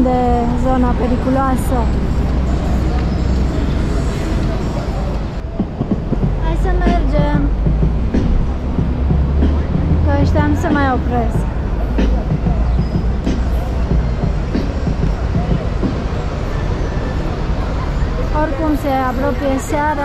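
A woman talks with animation close to the microphone.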